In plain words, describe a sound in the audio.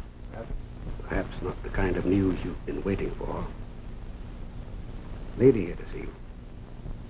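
An elderly man speaks in a low, measured voice.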